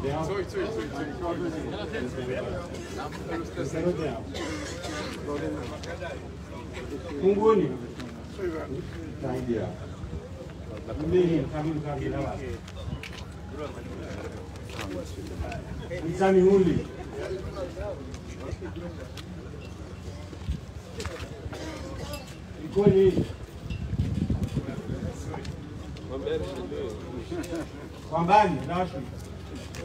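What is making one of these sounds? An elderly man speaks with animation through a microphone and loudspeakers outdoors.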